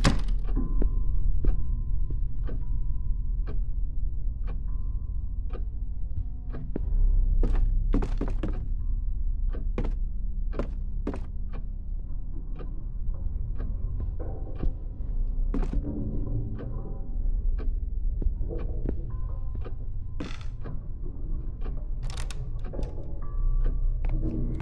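Footsteps thud slowly and steadily on a wooden floor indoors.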